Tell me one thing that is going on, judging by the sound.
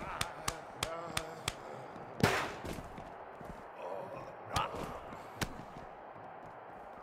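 Heavy body blows thud and slam during a brawl.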